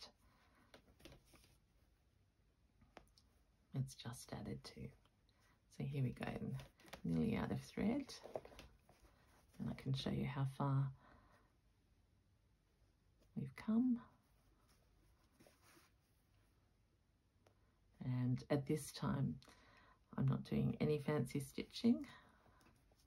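Thread is pulled softly through cloth.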